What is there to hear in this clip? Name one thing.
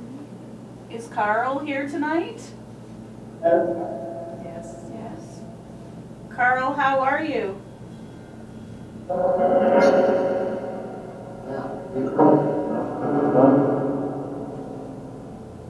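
A young woman calls out loudly in short bursts, close by.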